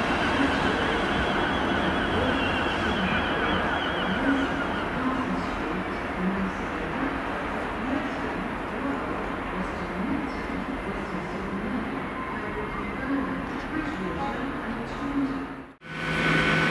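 A train's wheels clatter slowly over the track points.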